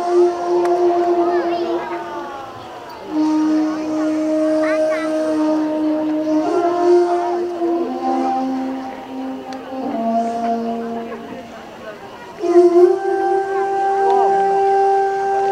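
A large crowd murmurs quietly.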